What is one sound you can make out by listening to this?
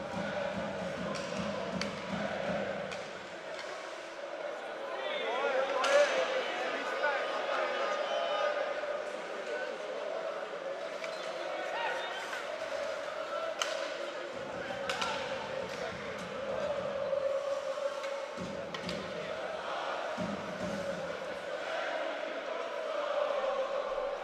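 Skates scrape and hiss on the ice.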